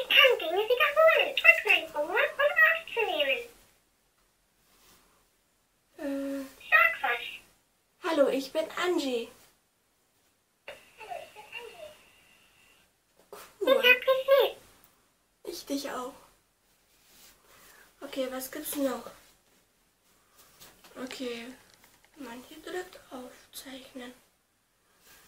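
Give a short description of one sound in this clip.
A young woman talks with animation close to a microphone, in short bursts with pauses.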